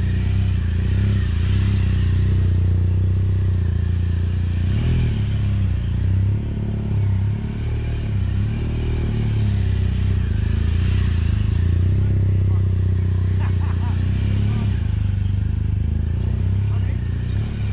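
An adventure motorcycle engine rumbles as it circles at low speed.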